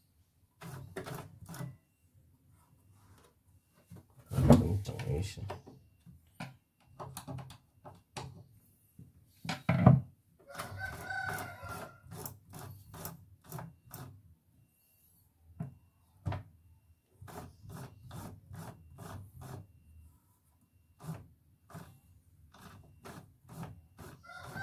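Plastic parts rattle and knock as they are turned by hand.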